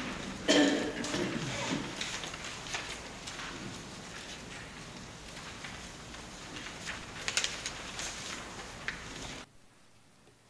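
People shuffle and rustle papers in their seats.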